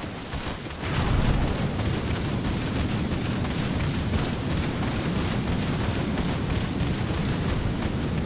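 Water splashes and sprays rapidly as feet run across it.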